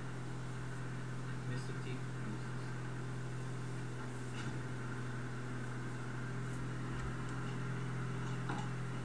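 A pickup truck engine hums steadily as it drives.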